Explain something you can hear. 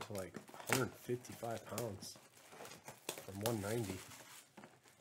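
Plastic shrink wrap crinkles as it is torn off a box.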